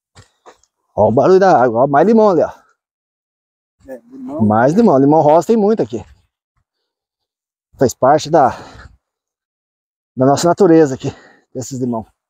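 A man speaks calmly and close by, outdoors.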